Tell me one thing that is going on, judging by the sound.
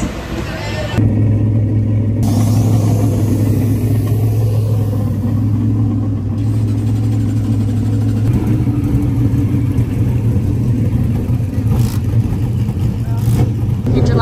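A race car engine idles with a deep, steady rumble.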